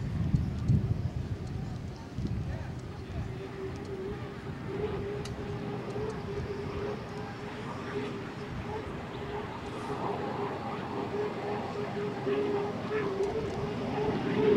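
Spray from a racing boat hisses across the water.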